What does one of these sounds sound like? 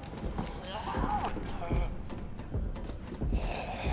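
Hands and feet clank on a metal ladder rung by rung.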